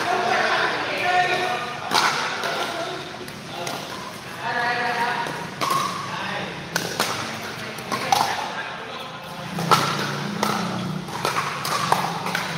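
Men talk and call out nearby in an echoing indoor hall.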